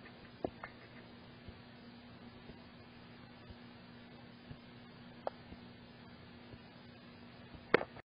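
A television hums softly and steadily.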